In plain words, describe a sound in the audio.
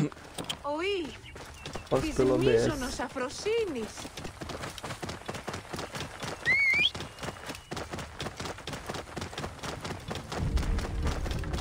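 A horse's hooves thud steadily at a gallop.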